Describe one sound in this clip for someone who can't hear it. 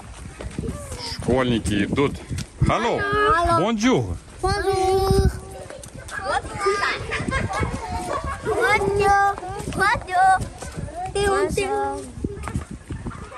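Children chatter and call out excitedly close by, outdoors.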